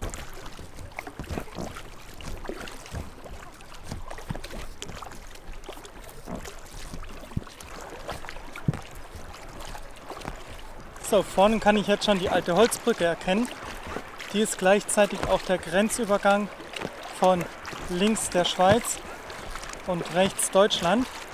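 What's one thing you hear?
A paddle splashes and dips into water.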